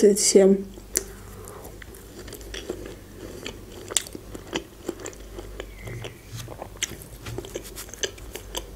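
A young woman chews food with soft, wet mouth sounds.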